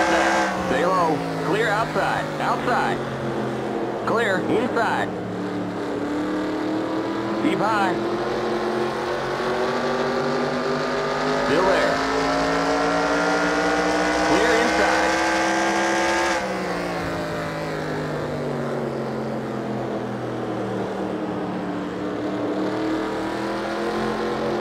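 Other race cars' engines whine past nearby.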